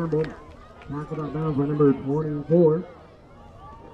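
Young men on the sideline shout and cheer loudly outdoors.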